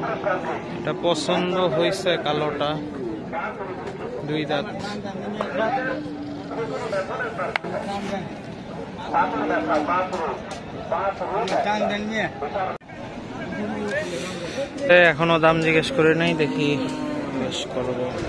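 Men talk with animation close by, outdoors among a crowd.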